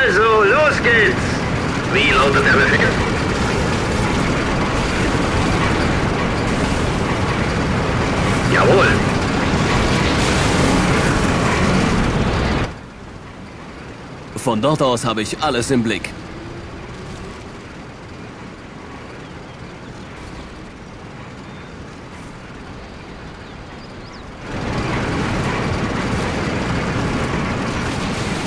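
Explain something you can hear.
Tank engines rumble and clank steadily.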